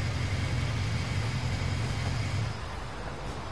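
A motorcycle engine rumbles and then cuts off.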